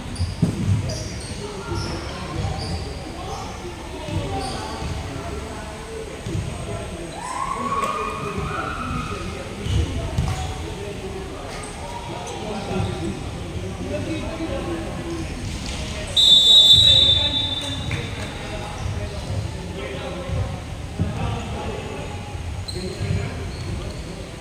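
Basketballs bounce on a wooden floor with echoing thuds.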